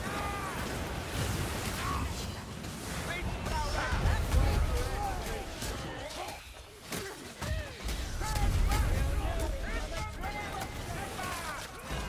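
Heavy blasts boom with a deep rumble.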